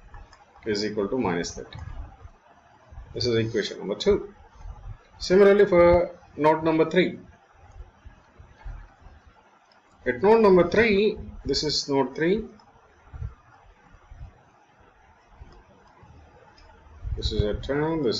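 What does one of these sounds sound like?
A man explains calmly into a close microphone, with pauses.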